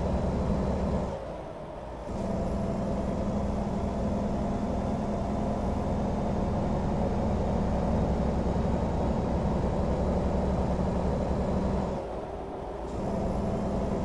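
A truck engine briefly drops off twice as gears shift.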